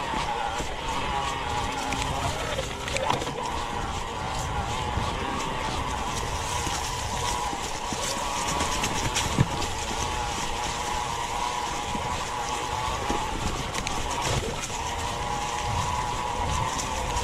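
An electric bike motor whines steadily.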